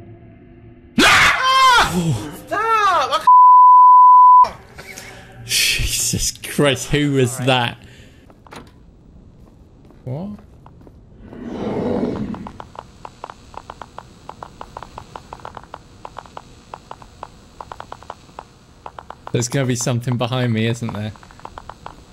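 A man talks into a microphone with animation, close by.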